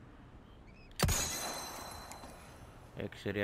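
A pistol fires a single loud shot that rings out and fades.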